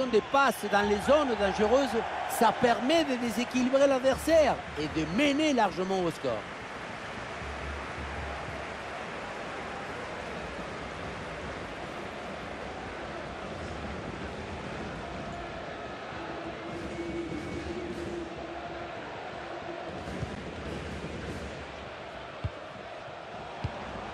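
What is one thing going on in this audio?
A stadium crowd murmurs steadily in a large open space.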